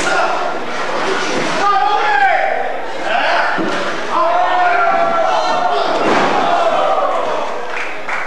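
Bodies thud against the ring ropes and mat.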